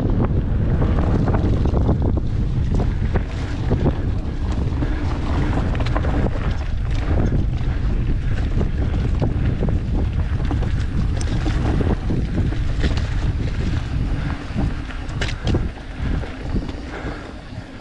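Wind rushes loudly past a bicycle rider.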